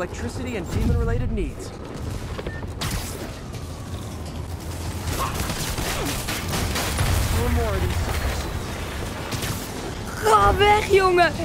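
Electricity crackles and explosions rumble.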